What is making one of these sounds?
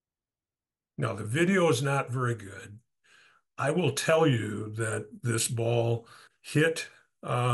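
An older man speaks calmly and close to a microphone.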